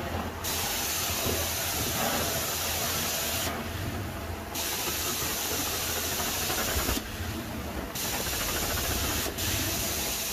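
A carpet cleaning wand sucks water with a loud, rushing hiss that breaks off briefly between strokes.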